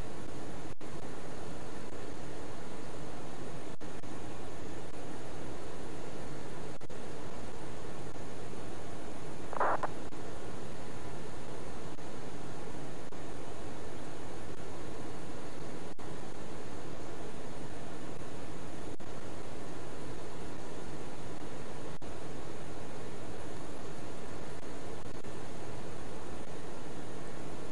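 A steady aircraft engine drone hums throughout.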